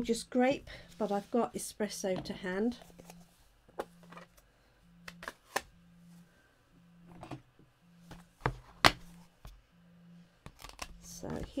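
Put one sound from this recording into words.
Small plastic objects knock lightly as they are set down on a wooden table.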